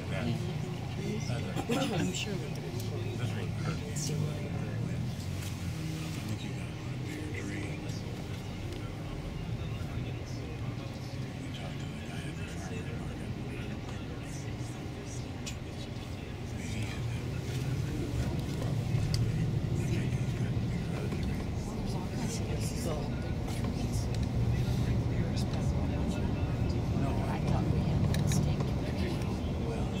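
A coach bus engine hums with road noise rumbling inside the cabin.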